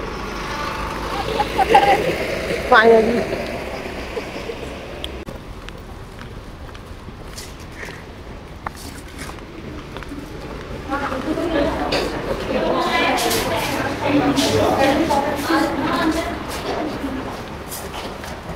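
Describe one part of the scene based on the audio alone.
Several women chat and talk nearby.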